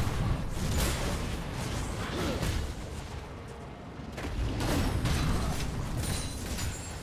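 Spell effects whoosh and crackle in a game fight.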